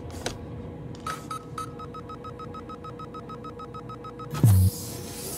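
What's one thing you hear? A keypad beeps in a quick even series.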